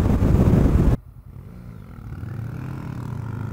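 A nearby motorcycle engine idles with a low rumble.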